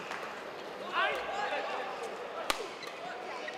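A racket smacks a shuttlecock.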